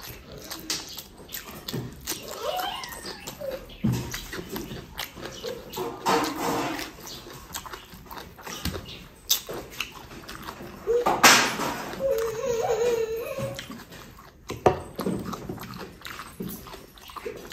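Fingers squish and mix rice on a metal plate.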